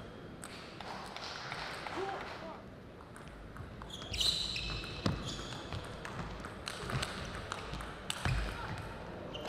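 A table tennis ball clicks against paddles and the table in a quick rally.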